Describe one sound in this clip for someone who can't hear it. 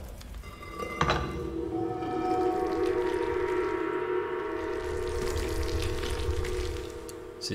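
Game music plays with a steady melody.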